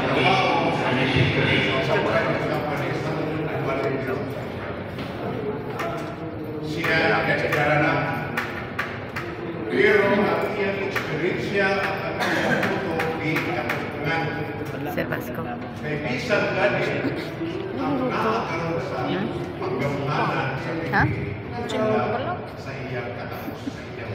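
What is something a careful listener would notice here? An elderly man speaks with animation into a microphone, heard through loudspeakers in an echoing hall.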